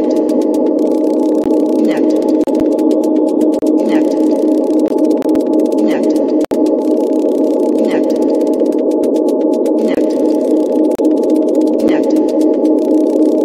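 Electronic music plays steadily, with a droning synth chord and a sweeping sound that repeats every two seconds.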